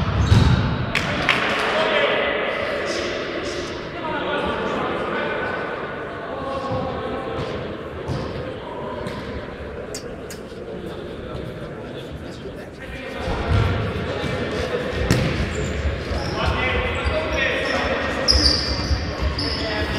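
Men shout across an echoing sports hall.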